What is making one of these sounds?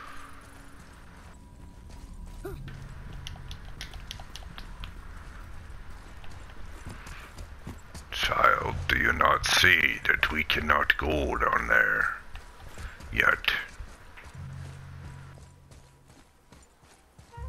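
Heavy footsteps crunch on stone.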